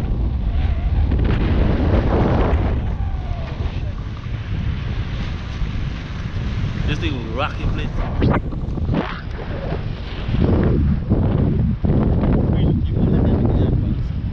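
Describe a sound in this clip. Wind blows hard into the microphone outdoors.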